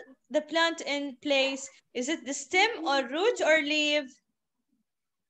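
A young girl speaks clearly through an online call.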